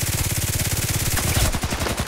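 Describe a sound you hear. A pistol fires shots.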